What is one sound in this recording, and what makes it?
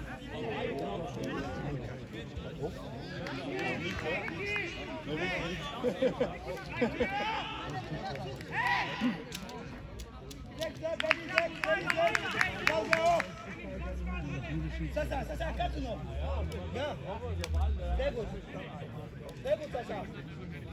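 Young players shout to each other across an open field, heard from a distance.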